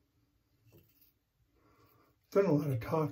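A razor scrapes across stubble.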